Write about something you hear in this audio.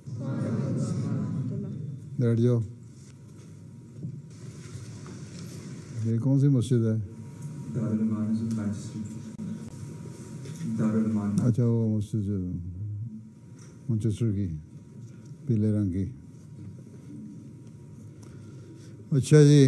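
A man speaks into a microphone, his voice echoing in a large hall.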